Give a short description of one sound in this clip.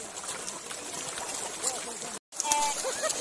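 Large fish splash and thrash in water close by.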